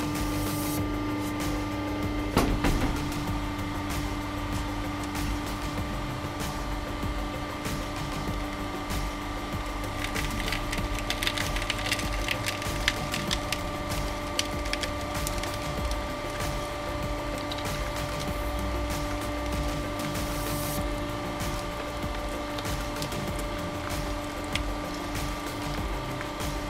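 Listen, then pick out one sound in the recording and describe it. A hydraulic press hums steadily.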